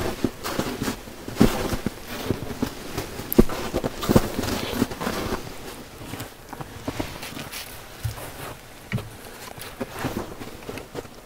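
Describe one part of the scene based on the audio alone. Footsteps crunch through snow close by.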